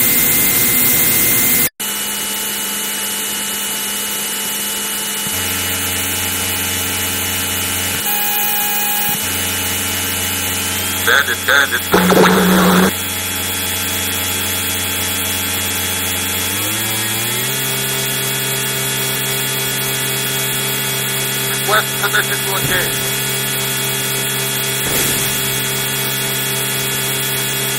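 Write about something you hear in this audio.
A synthesized jet fighter engine drones from an old computer game.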